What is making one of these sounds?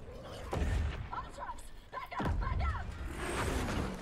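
A woman shouts urgently through a helmet radio.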